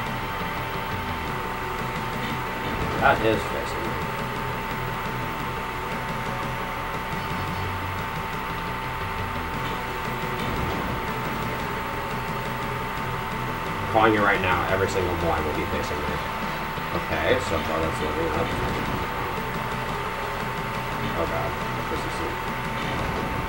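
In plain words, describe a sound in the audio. Retro video game music plays steadily.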